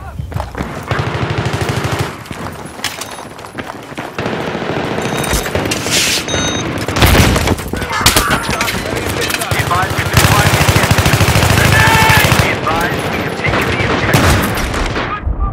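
A rifle fires rapid bursts at close range.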